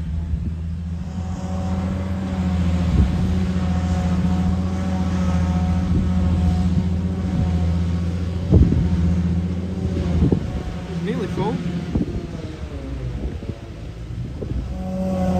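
A forage harvester whirs loudly.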